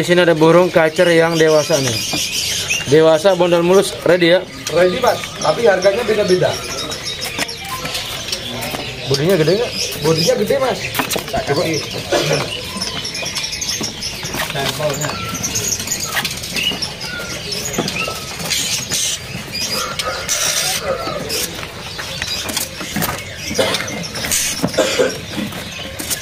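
A bird flutters its wings against a cage.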